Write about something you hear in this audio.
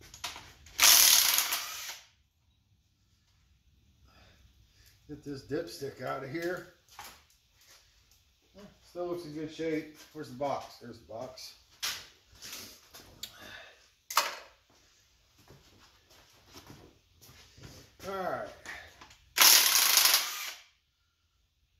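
A power impact wrench whirs in short bursts.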